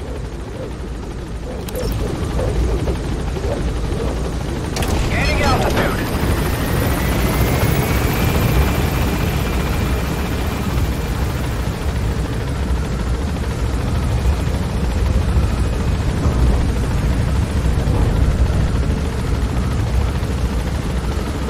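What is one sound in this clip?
A helicopter's rotor drones steadily with a deep rumble.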